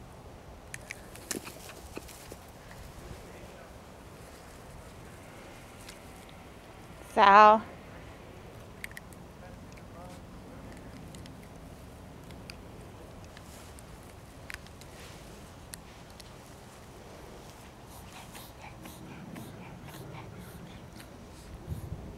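Small dogs scuffle and patter on grass.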